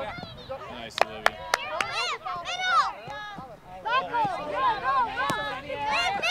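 A soccer ball is kicked with sharp thumps.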